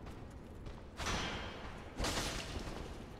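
A sword swings through the air with a whoosh.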